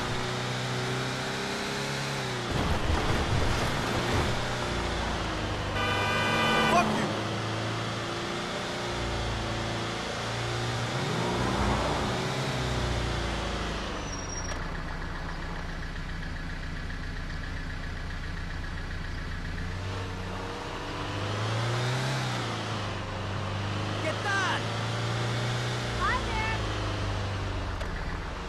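A truck engine hums steadily, rising and falling in pitch as it drives.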